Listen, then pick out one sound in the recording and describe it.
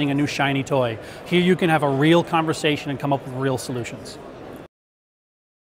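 A man speaks calmly and clearly into a clip-on microphone, close by.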